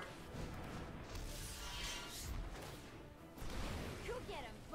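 A game explosion bursts with a fiery roar.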